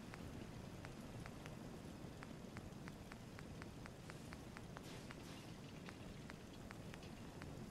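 Short menu clicks tick quickly and repeatedly.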